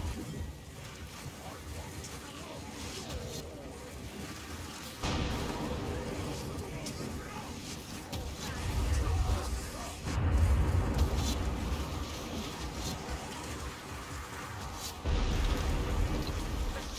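Rain hisses steadily.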